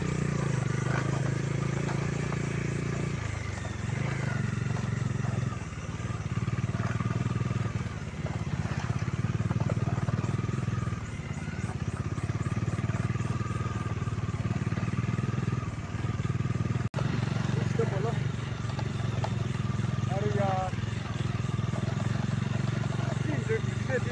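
Tyres crunch over loose gravel.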